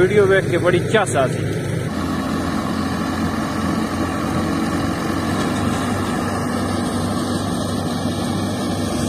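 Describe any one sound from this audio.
A threshing machine engine drones steadily.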